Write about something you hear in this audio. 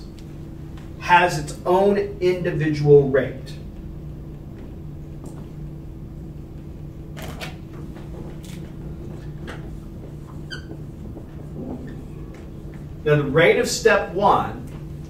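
An older man lectures calmly.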